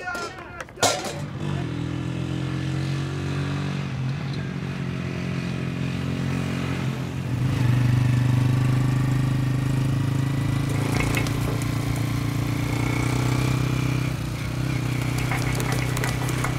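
A motorcycle engine drones steadily as it rides along.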